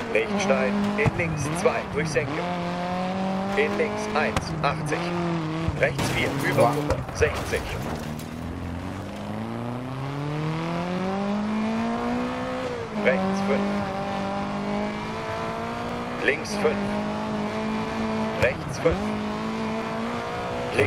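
A car engine revs hard, rising and falling in pitch as gears shift.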